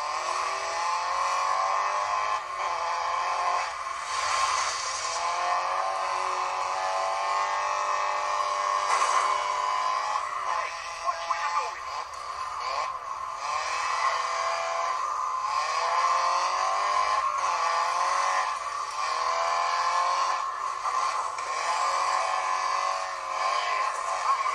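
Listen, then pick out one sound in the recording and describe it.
Tyres skid and crunch on loose dirt.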